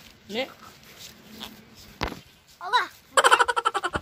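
A young child speaks close by.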